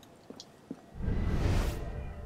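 A loud whooshing rush swells up.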